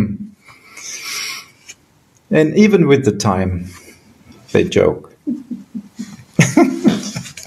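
A man laughs over an online call.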